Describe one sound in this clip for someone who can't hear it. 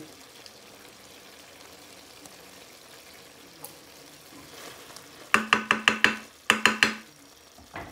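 A wooden spoon stirs and scrapes in a metal pan.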